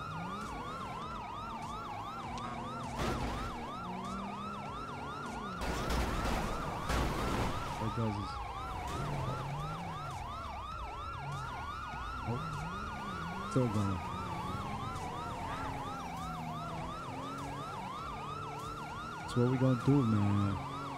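Police sirens wail steadily, rising and falling.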